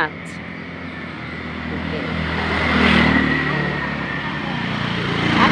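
A motorbike passes by on the road.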